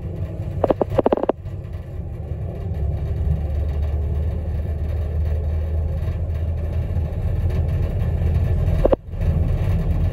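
A vehicle's engine hums low and steady from inside as it drives along a road.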